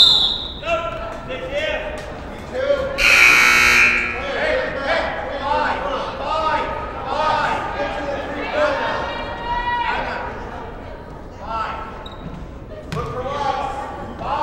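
Young women call out to each other on the court.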